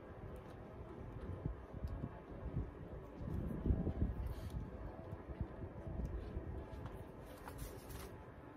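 Fingers press and rustle in loose soil.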